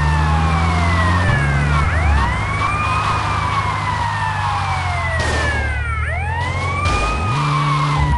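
An armoured police van's engine drones in a video game.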